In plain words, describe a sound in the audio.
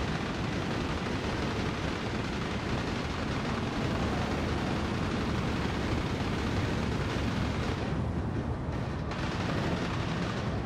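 A racing car engine roars at high speed, steady and loud.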